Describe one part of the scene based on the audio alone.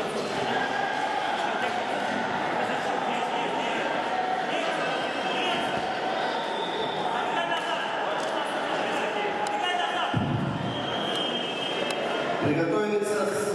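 A crowd of spectators chatters and calls out in a large echoing hall.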